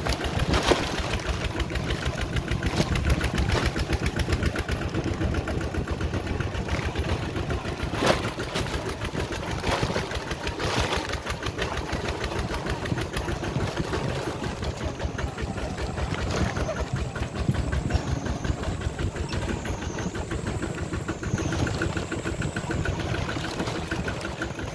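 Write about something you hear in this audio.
A vehicle rattles and jolts over bumps.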